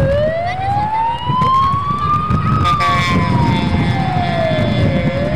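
A vehicle engine whines as it drives past, rising and then falling in pitch.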